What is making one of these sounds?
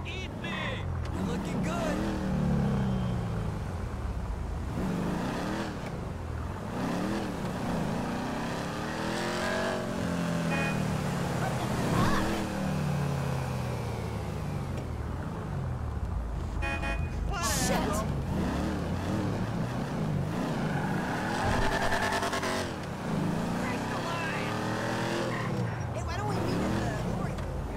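A car engine revs up and down repeatedly as it accelerates and shifts.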